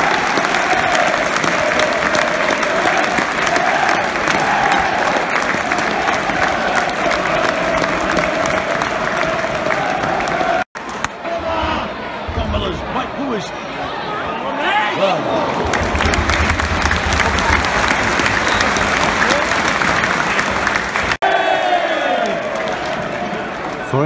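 A big crowd cheers and roars in a stadium.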